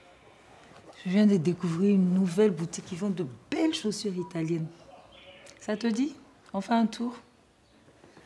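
A middle-aged woman speaks close by, with feeling.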